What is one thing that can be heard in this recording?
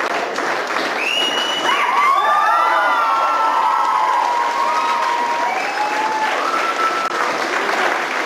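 Young people cheer and whoop over the applause.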